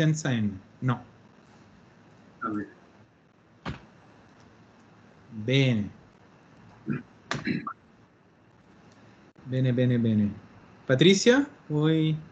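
A woman speaks calmly and clearly over an online call.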